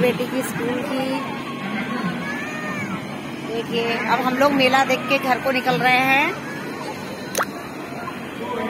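A middle-aged woman talks close to the microphone, outdoors.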